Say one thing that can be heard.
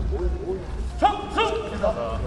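Young athletes shout loudly together.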